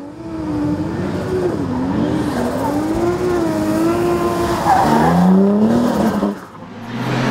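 A race car engine roars and revs as the car slides on a wet track.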